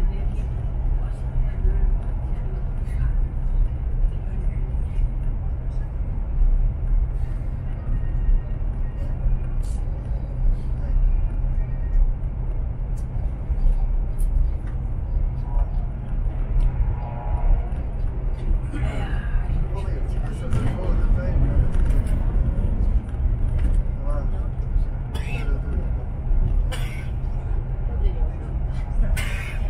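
Wheels clatter and knock over rail joints.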